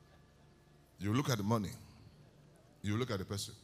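A man speaks loudly into a microphone, heard through loudspeakers in a large hall.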